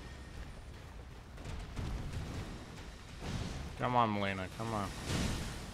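Magic blasts whoosh and crackle.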